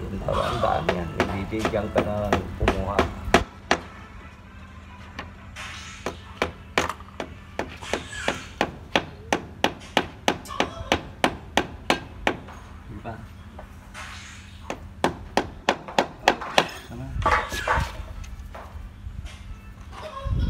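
Sharp taps knock repeatedly and quickly against a pipe close by.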